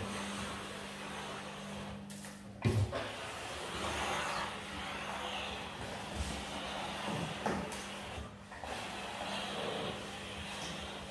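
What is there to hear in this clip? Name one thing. A steam cleaner hums steadily.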